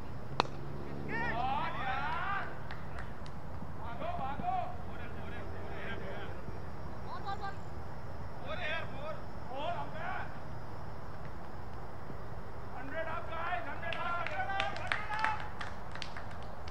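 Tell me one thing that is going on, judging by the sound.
Men shout and call out to each other from across an open field.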